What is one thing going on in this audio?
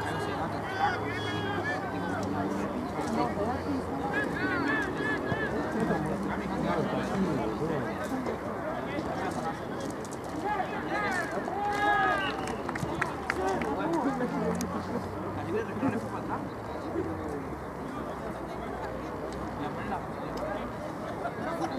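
A crowd of spectators chatters and shouts nearby outdoors.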